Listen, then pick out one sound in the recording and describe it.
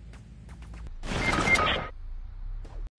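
A game character is knocked to the ground with a loud crash.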